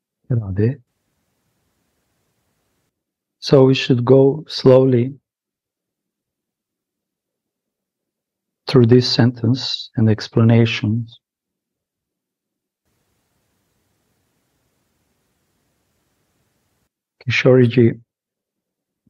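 A man speaks calmly over an online call, in short bursts with long pauses.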